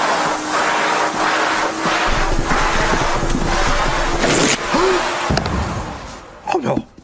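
A vacuum cleaner roars loudly, then cuts out.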